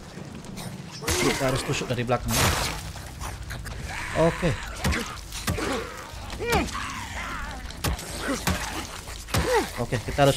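Heavy blows of a bat thud against bodies.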